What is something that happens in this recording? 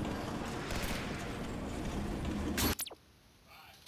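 Large wings flap as a creature flies overhead.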